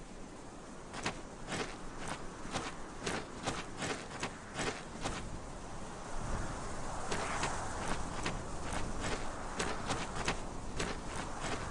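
Footsteps crunch on a dirt road at a steady pace.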